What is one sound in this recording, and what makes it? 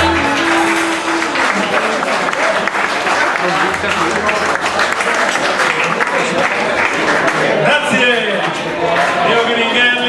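A saxophone plays a melody.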